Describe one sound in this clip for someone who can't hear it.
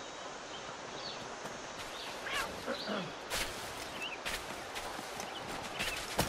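Footsteps fall on a dirt path outdoors.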